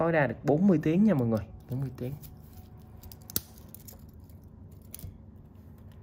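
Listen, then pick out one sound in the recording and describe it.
A metal watch clasp clicks and snaps.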